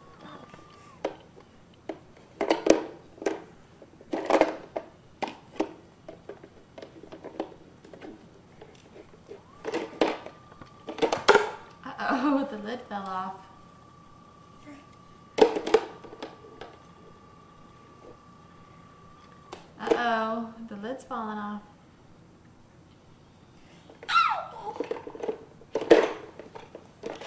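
Plastic toys knock and clatter.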